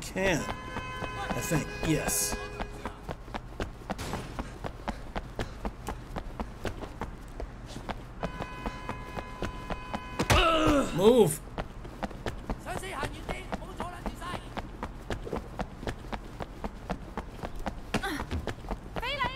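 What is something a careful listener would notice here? Footsteps run quickly and steadily on a hard floor.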